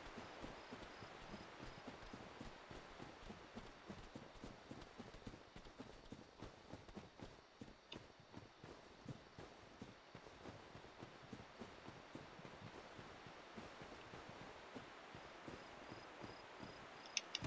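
Heavy footsteps run quickly over soft ground.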